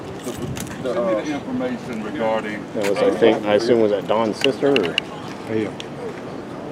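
A man speaks firmly and with animation close by, outdoors.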